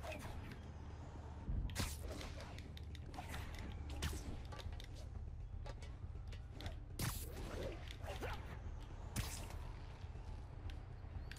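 A young man talks casually into a headset microphone.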